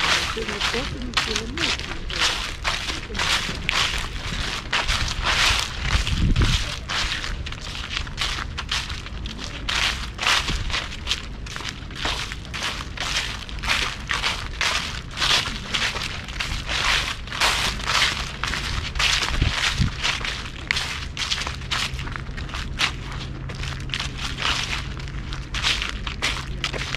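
Dry leaves crunch and rustle underfoot at a steady walking pace.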